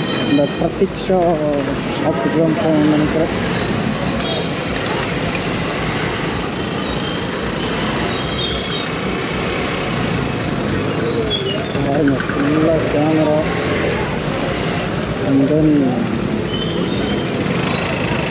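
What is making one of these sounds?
A motorcycle engine runs steadily up close.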